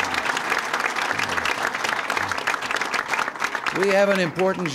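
A crowd applauds loudly.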